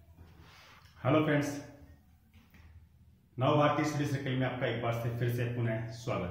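A middle-aged man speaks calmly and clearly close to the microphone.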